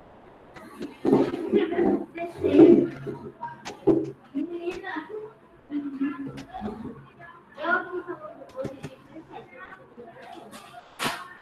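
A woman speaks calmly through a microphone, close by.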